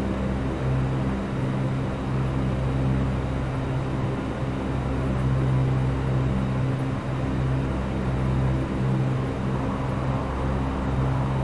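Aircraft engines hum steadily as a plane taxis.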